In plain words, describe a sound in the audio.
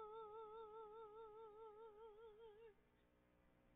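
A woman sings with vibrato into a microphone.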